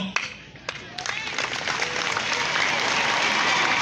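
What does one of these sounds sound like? A crowd cheers and ululates outdoors.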